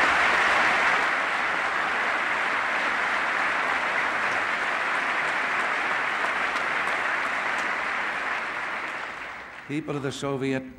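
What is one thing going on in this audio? A crowd applauds loudly in a large echoing hall, then the clapping dies away.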